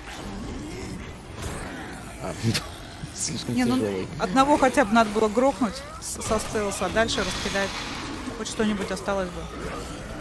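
A creature snarls and growls close by.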